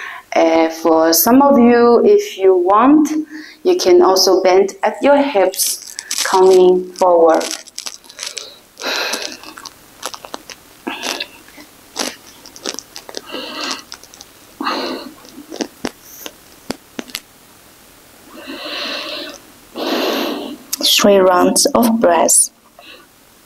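A young woman speaks calmly and softly into a microphone.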